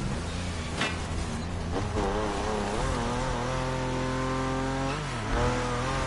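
Tyres screech in a skid.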